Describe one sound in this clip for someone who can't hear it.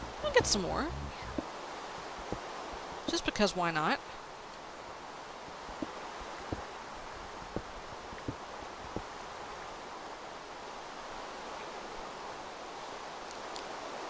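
A pickaxe taps and chips repeatedly at stone blocks.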